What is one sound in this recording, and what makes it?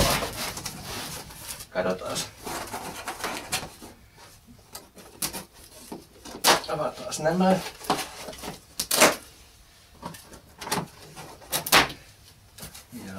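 Hands rustle and handle a cardboard box.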